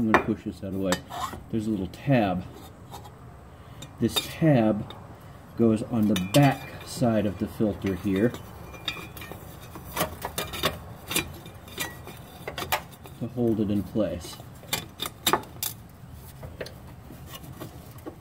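A metal part clicks and taps as hands handle it.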